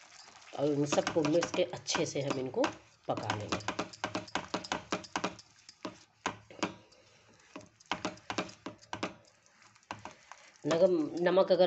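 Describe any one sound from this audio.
A spatula scrapes and stirs thick sauce in a pan.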